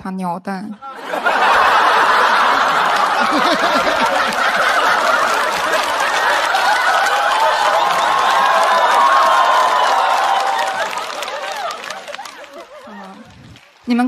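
An audience laughs and claps loudly in a large hall.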